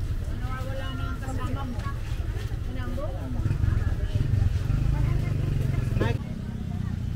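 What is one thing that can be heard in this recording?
People chat in a small crowd nearby.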